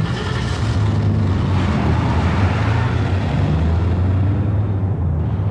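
A car engine roars and revs as the car speeds away.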